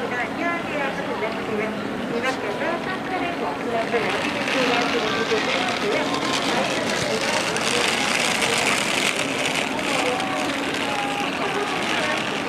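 People chatter and murmur nearby outdoors.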